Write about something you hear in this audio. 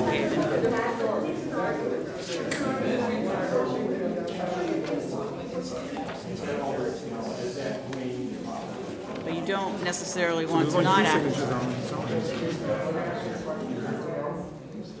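A middle-aged man speaks calmly into a table microphone in a room with a slight echo.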